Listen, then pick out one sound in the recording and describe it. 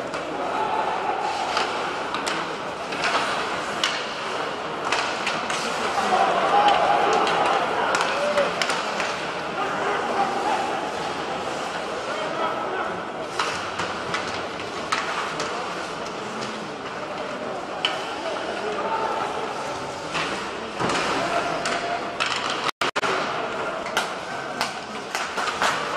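A crowd murmurs and calls out in a large echoing arena.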